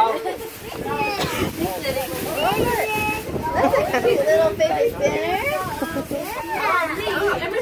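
Tissue paper and a plastic bag rustle.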